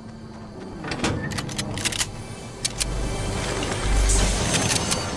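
A chest creaks open with a rising sound.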